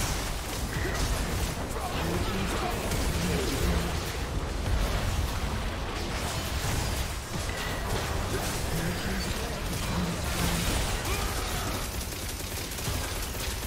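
Game spell effects crackle and blast in quick succession.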